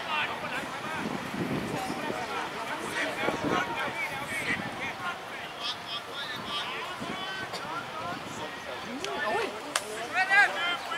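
Men shout and call out to one another across an open field.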